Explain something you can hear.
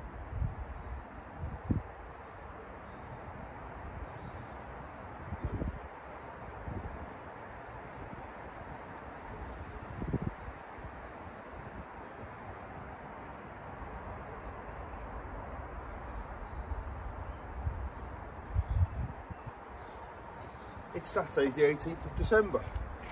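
Wind buffets outdoors.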